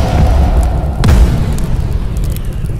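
A huge explosion booms and rumbles loudly.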